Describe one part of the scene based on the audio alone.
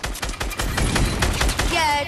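A gun fires in a video game.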